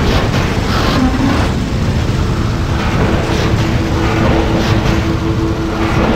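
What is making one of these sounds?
Explosions boom and rumble continuously.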